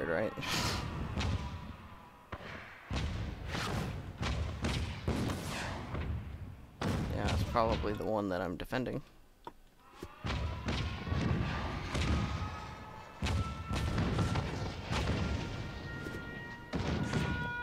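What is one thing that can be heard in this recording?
Rockets burst with loud booms.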